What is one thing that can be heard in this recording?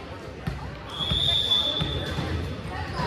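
Sneakers squeak on a wooden gym floor.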